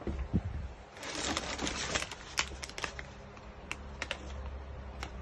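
A plastic bag crinkles and rustles as a hand handles it.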